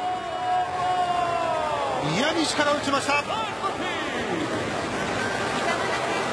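A crowd cheers in a large stadium.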